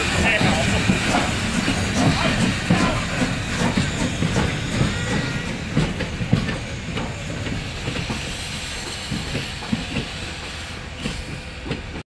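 Train wheels clatter and rumble over rail joints close by, slowly fading.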